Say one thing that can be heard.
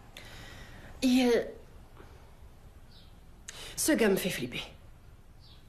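A young woman speaks quietly.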